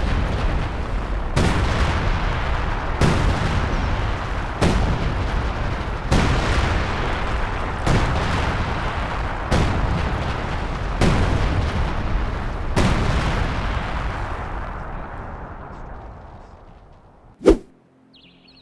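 Artillery shells explode one after another with heavy booming blasts.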